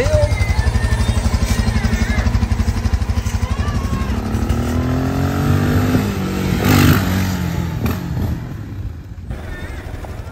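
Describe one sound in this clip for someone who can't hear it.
A motorcycle engine putters and revs nearby.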